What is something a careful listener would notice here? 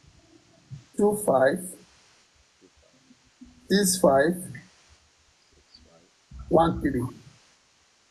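A man speaks with animation over an online call, in short bursts.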